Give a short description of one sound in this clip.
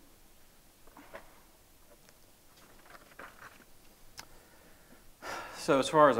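A man speaks calmly in a quiet room.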